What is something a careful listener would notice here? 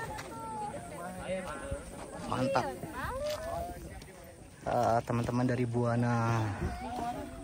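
A crowd of young people chatter and call out outdoors.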